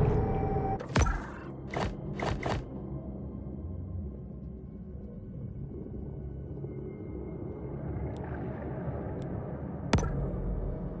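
Soft menu clicks tick sharply now and then.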